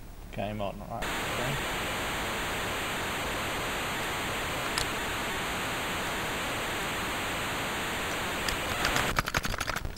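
An old computer game plays a steady harsh hissing noise.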